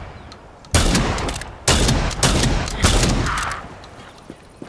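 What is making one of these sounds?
A rifle fires loud bursts of shots that echo outdoors.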